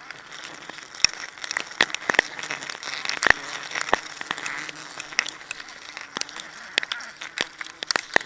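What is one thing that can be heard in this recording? Wooden pegs knock sharply against a tree trunk.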